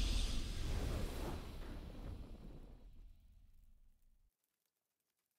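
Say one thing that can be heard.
A triumphant game fanfare rings out and slowly fades away.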